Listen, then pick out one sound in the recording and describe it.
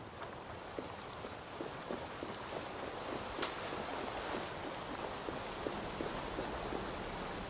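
A waterfall rushes and roars close by.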